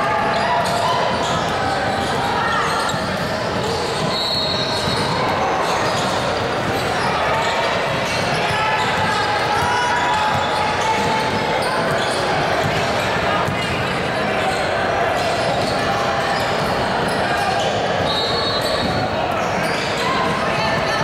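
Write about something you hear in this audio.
Voices of players and spectators chatter and call out in a large echoing gym.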